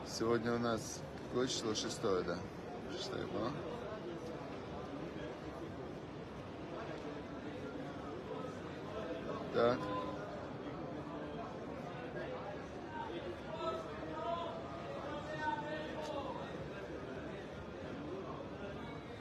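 A middle-aged man speaks quietly close by, as if praying or murmuring.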